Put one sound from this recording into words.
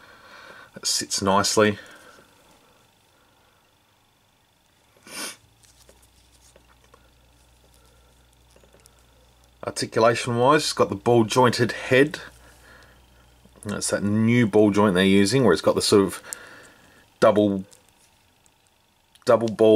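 Fingers handle a small plastic figure, with soft rubbing and faint clicks of its joints.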